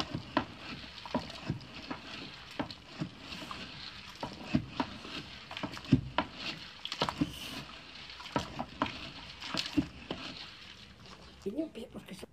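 A wooden stick scrapes and knocks against a metal pot while stirring.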